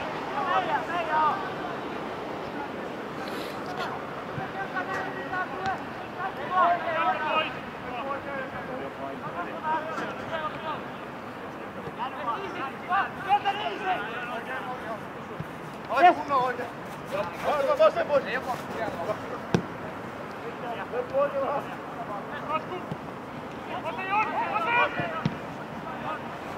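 Young men shout to one another across an open field outdoors.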